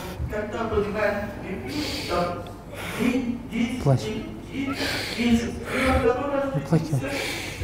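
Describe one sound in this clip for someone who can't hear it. A woman speaks with emotion close by.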